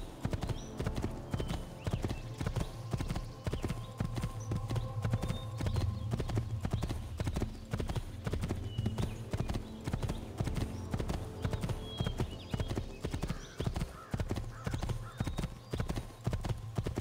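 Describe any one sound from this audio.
Horse hooves gallop rapidly over a dirt path.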